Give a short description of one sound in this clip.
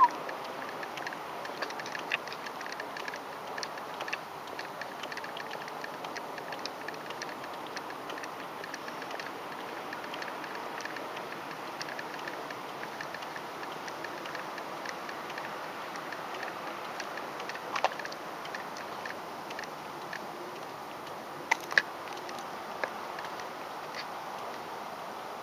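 Small wheels roll steadily over rough pavement, with light clicks and rattles.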